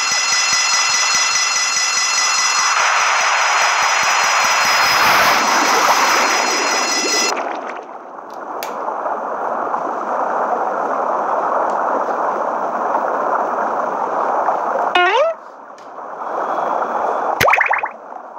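A submarine's motor whirs steadily underwater.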